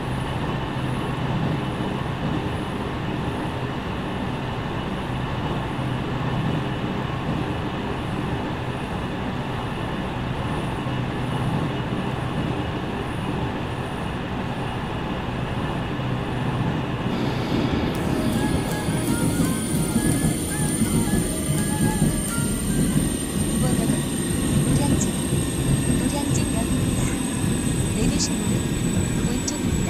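A train rumbles steadily along the tracks, growing louder partway through.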